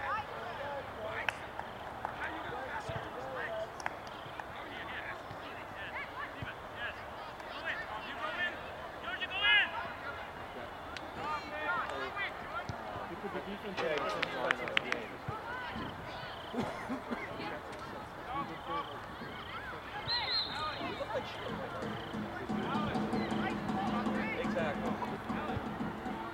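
Young men and spectators shout and call out at a distance outdoors.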